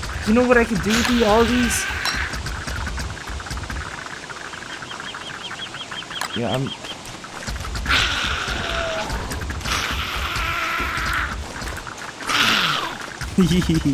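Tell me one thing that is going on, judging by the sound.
Spiders hiss and screech as they attack.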